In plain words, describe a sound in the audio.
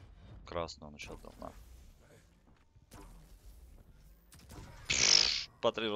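A laser gun fires in sharp bursts.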